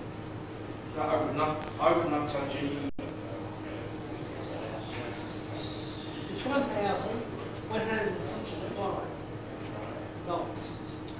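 A man speaks calmly in a room with a slight echo.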